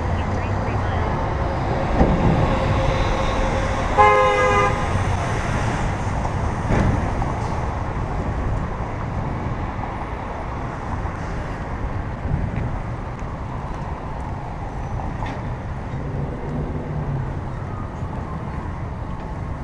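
City traffic rumbles by on a nearby road, heard outdoors in wind.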